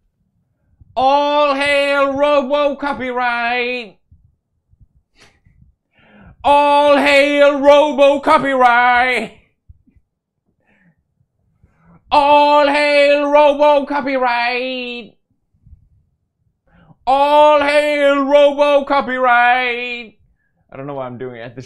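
A young man sings loudly in short bursts.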